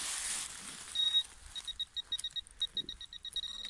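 A metal detector beeps rapidly.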